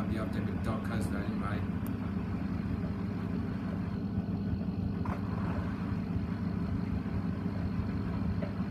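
A washing machine hums and rumbles steadily as its drum turns.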